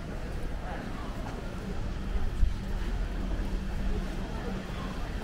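Distant people murmur faintly outdoors.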